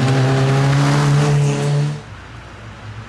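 A rally car's engine roars past close by at full throttle.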